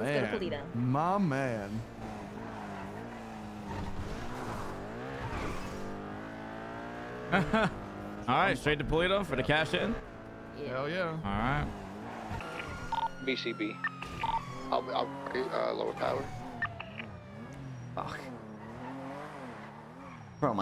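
A car engine revs up and down as it speeds along.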